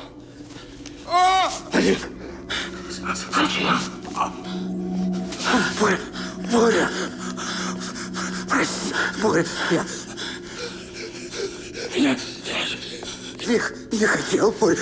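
A man groans and moans in pain, close by.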